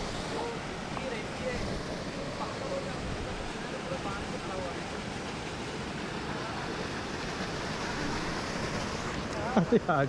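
Water rushes and splashes steadily nearby.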